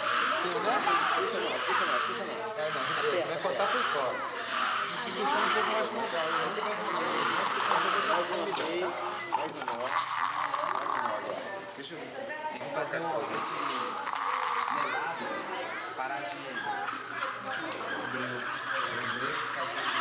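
Several children chatter and talk nearby.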